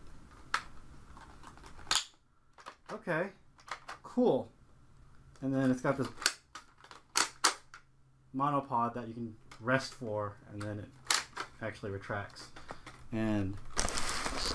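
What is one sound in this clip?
Plastic parts of a toy gun click and clatter as a man handles them.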